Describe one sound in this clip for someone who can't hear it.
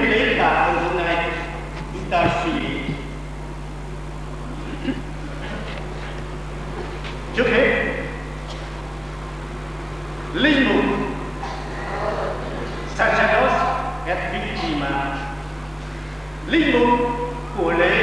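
A middle-aged man speaks calmly into a microphone with pauses, in an echoing hall.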